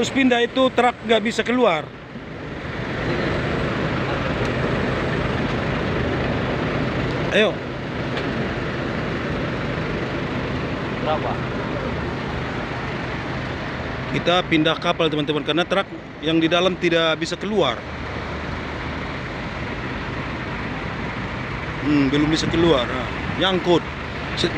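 A bus engine idles with a steady rumble.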